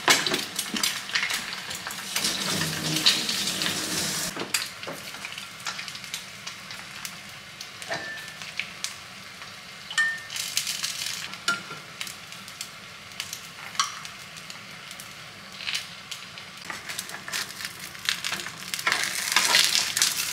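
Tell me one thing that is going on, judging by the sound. Eggs sizzle and crackle in a hot frying pan.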